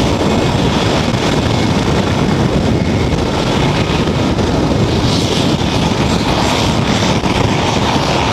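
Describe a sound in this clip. A helicopter's engine whines and roars.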